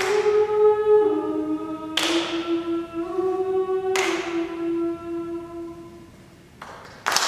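A small choir of women sings a sustained chord in an echoing hall.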